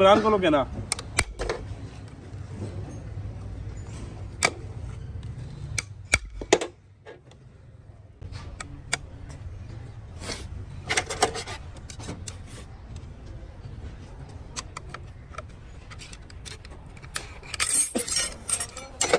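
Metal tools click and tap against a heavy metal gear.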